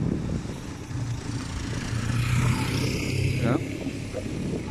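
A motorcycle rides past close by.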